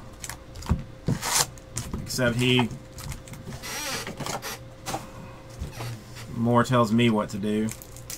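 Cardboard cards rustle and tap as hands shuffle through them.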